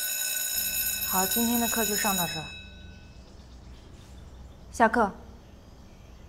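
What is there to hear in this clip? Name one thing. A young woman speaks calmly to a class.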